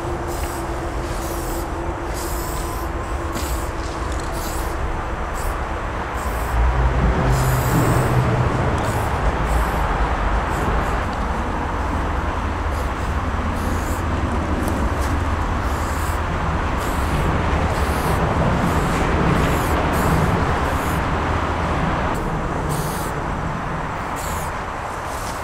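An aerosol spray paint can hisses in short bursts.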